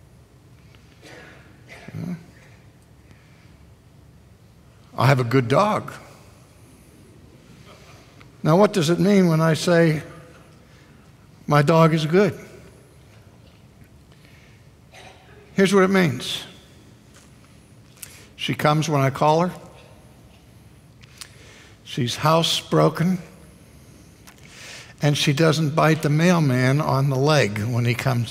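A middle-aged man speaks with emphasis through a microphone, in bursts with long pauses.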